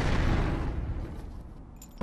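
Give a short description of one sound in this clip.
A dragon roars loudly.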